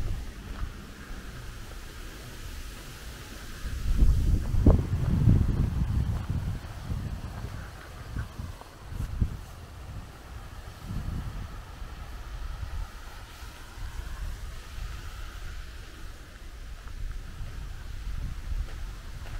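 Wind rumbles and gusts outdoors.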